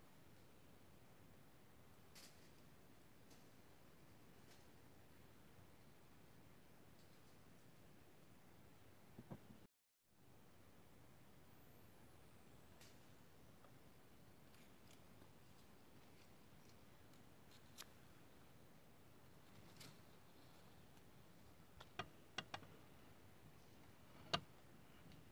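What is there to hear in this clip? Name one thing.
A bird pecks and scratches among dry leaves and stones.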